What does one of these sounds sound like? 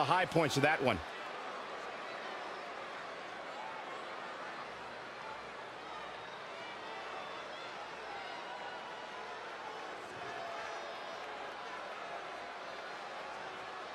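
A large crowd cheers loudly in an arena.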